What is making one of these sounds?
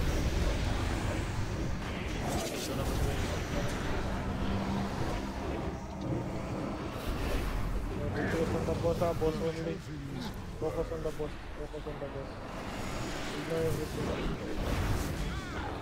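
Magic blasts and fiery explosions crackle and boom in a hectic battle.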